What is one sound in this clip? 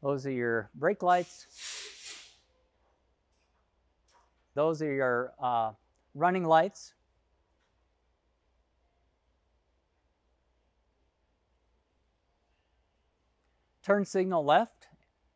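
A middle-aged man speaks calmly and clearly into a close microphone, in short bursts with pauses.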